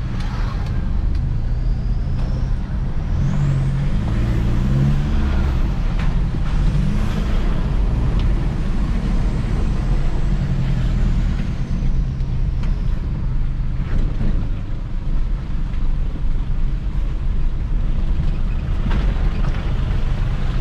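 Tyres rumble over a rough, wet road.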